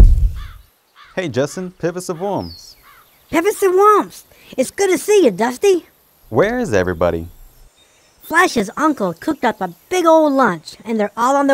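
A man speaks in a deep, gruff cartoon voice.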